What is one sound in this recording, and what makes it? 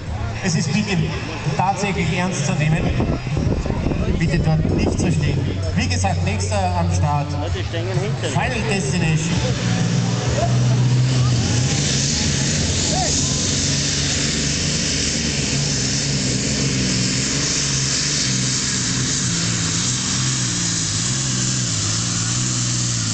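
A tractor engine idles with a deep rumble, then roars loudly at full power.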